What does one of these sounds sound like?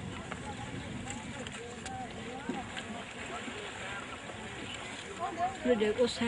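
Water splashes as a man wades through a river.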